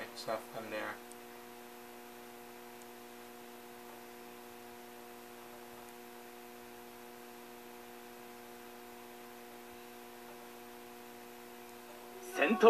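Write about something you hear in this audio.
A video game plays a steady, held electronic chord.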